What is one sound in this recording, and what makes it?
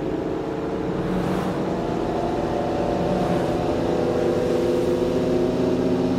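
A car engine hums steadily and rises slightly as the car speeds up.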